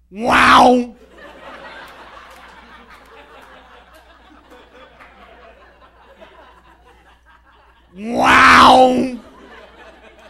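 A man shouts loudly into a microphone in a short burst.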